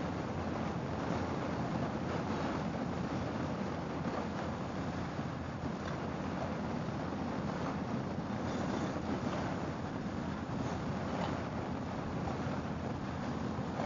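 A motorcycle engine rumbles steadily while riding.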